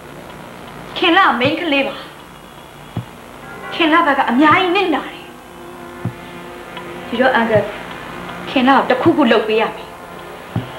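A young woman speaks urgently close by.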